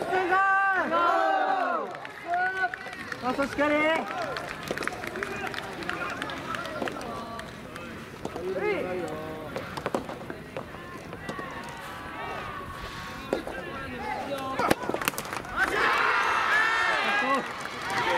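A racket strikes a ball with a sharp pop.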